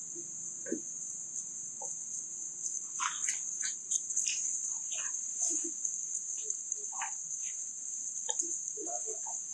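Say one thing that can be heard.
Dry leaves rustle and crunch under a monkey's feet.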